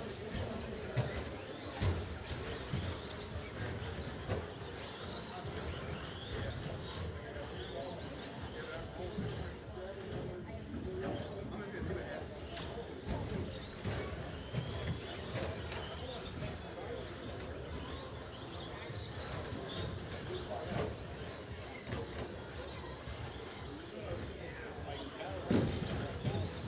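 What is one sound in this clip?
Model cars knock and thud as they bump over the track.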